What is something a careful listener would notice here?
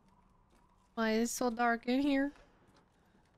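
A young woman speaks briefly into a close microphone with a raised voice.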